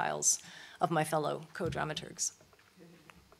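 A middle-aged woman speaks calmly into a microphone in a large hall.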